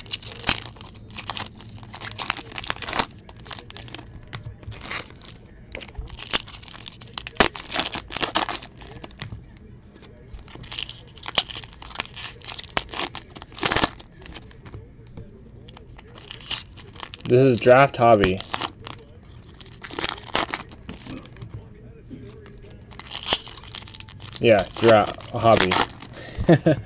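Foil card packs crinkle and tear as hands rip them open.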